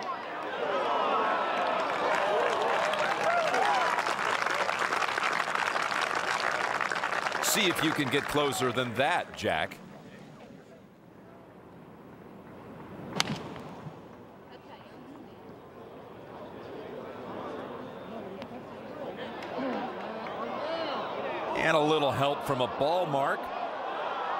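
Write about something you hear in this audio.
A large crowd cheers and applauds outdoors.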